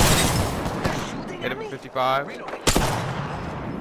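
A gun fires loudly with an echoing boom.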